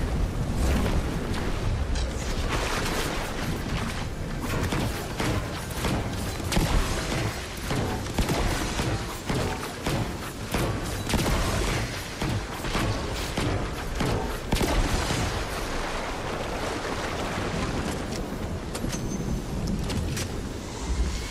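Footsteps crunch over the ground.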